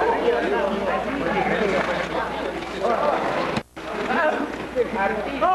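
Water splashes as people swim.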